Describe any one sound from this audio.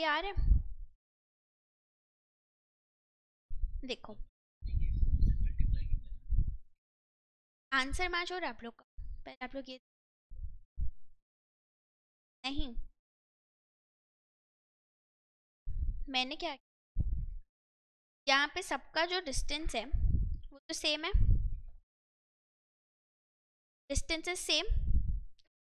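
A young woman speaks calmly in short phrases into a close microphone, with pauses.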